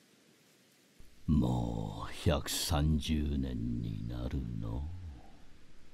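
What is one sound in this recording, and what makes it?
An elderly man speaks calmly and slowly.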